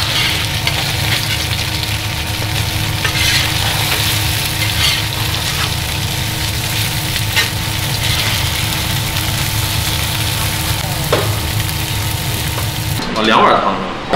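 Food sizzles and fries loudly in a hot pan.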